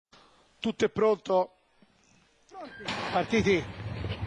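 Starting gates clang open.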